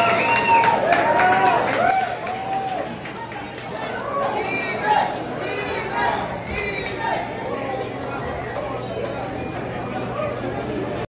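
A young woman sings loudly through loudspeakers.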